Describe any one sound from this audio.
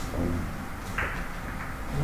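A cue strikes a billiard ball with a sharp tap.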